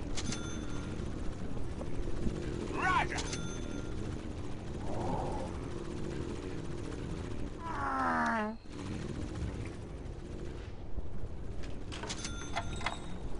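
Short electronic chimes and effects ring out from a game.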